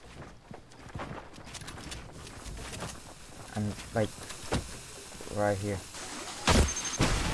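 Game building pieces clack into place in quick bursts.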